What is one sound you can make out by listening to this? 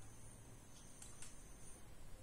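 A phone handset knocks as it is lifted.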